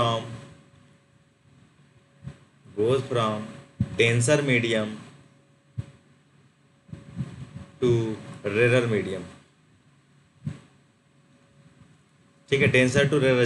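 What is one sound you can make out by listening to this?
A man speaks calmly into a close microphone, in short phrases with pauses.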